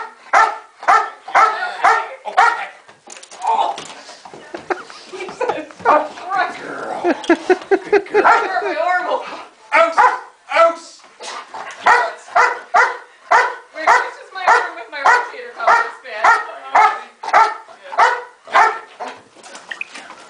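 A large dog barks.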